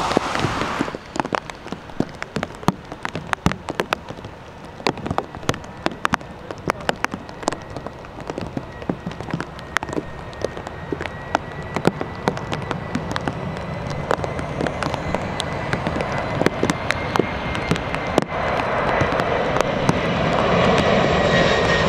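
A jet airliner's engines roar and whine, growing louder as the plane approaches low overhead.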